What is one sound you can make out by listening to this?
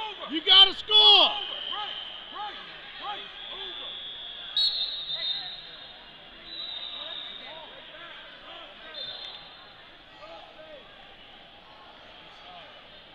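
Men and women in a crowd shout and call out in a large echoing hall.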